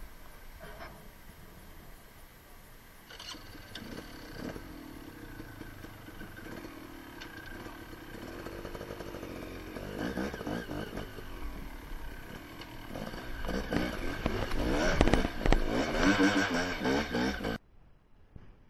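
A motorcycle engine runs and revs up close.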